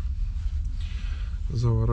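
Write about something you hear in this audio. Paper crinkles and rustles.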